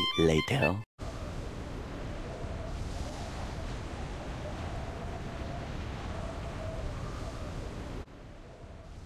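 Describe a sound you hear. Wind rushes past during a fall through the air.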